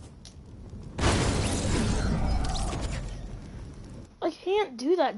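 Walls crash and crumble into pieces.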